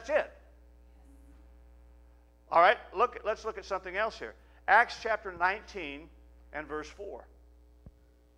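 A middle-aged man speaks with animation through a microphone in an echoing hall.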